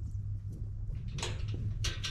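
A bison's hooves thud and rustle on dry grass close by.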